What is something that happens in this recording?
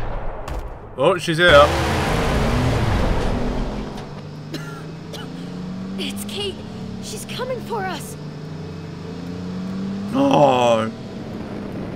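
A man speaks urgently through a game's soundtrack.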